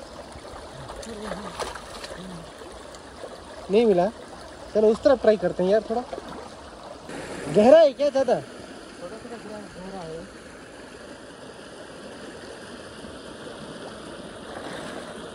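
Shallow water rushes and gurgles steadily.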